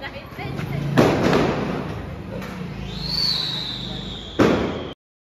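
Firecrackers bang loudly outdoors.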